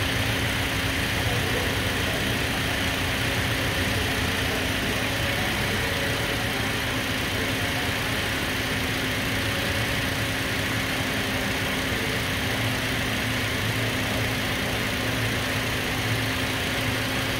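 A car engine idles close by with a steady low rumble and hum.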